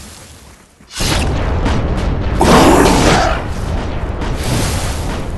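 Magic blasts whoosh and crackle loudly during a fight.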